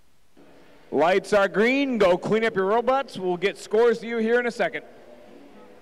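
A man announces loudly over a loudspeaker in a large echoing hall.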